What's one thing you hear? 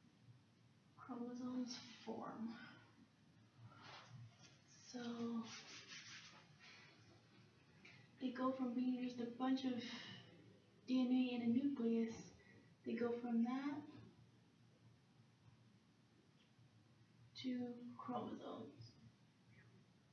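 A young woman speaks, explaining calmly.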